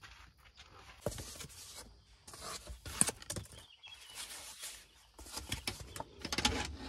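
Foam sheets rustle as hands pull them from a wooden rack.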